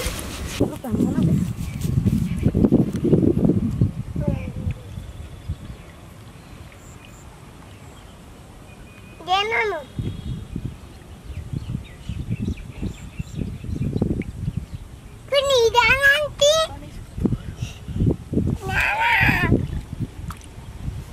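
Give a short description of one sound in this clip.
Shallow water splashes under a child's feet.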